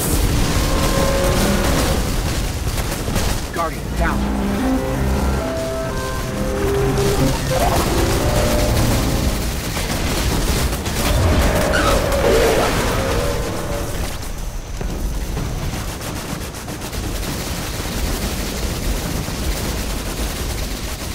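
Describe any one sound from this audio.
Energy blasts explode with crackling bursts.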